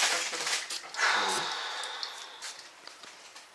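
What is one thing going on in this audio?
A spray bottle hisses as it sprays mist.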